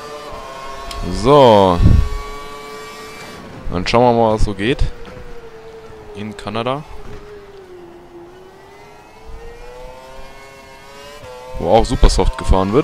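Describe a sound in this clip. A racing car engine revs up and down sharply as gears shift.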